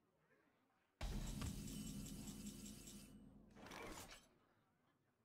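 A game plays a bright magical chime with a deep whoosh.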